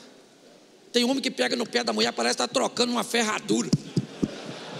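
An older man speaks with animation through a microphone in a large echoing hall.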